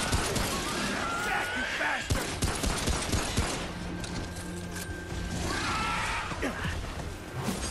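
A creature shrieks and screeches.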